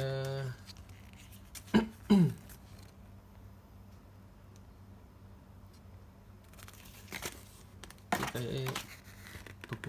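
Paper rustles as it is unfolded.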